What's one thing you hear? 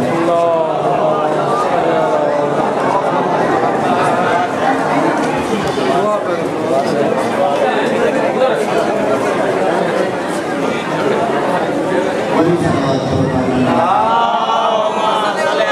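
A man chants loudly into a microphone, heard through loudspeakers in an echoing hall.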